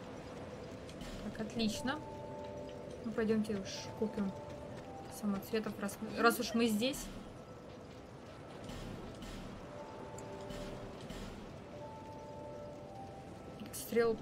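A young woman talks casually into a nearby microphone.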